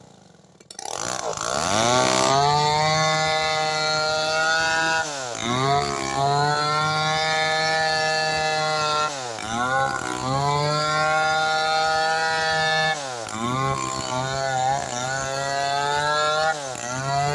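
A chainsaw engine roars loudly while cutting wood, its pitch dipping and rising every few seconds.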